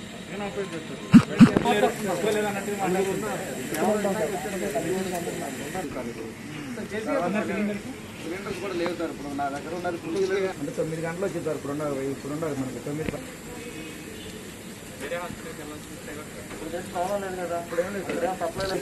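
Other men talk nearby.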